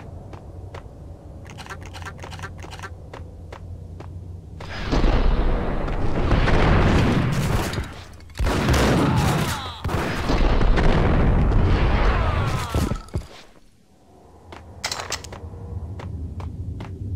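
Footsteps clatter quickly on a hard floor.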